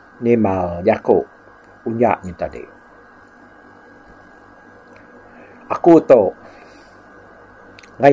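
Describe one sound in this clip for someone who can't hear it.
An elderly man speaks slowly and calmly in short phrases, close to a microphone.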